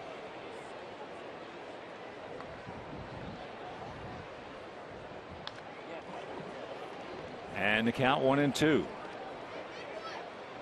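A crowd murmurs steadily in a large outdoor stadium.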